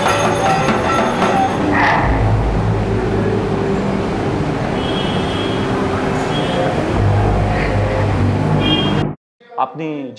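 A crowd murmurs in a large echoing space.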